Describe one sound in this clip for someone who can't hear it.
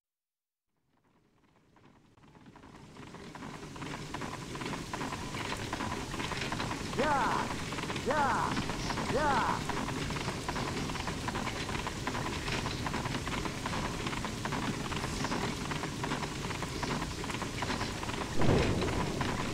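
Wind blows steadily, rising from silence.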